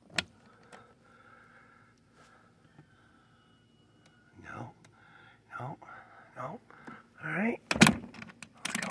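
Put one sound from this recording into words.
A metal latch clicks.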